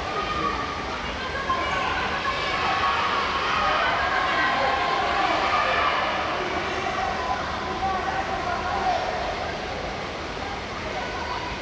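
A crowd cheers in a large echoing hall.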